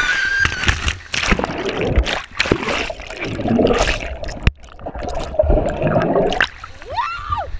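Water splashes loudly into a pool.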